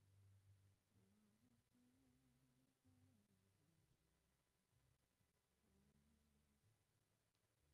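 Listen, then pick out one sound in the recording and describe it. A woman sings softly through a microphone.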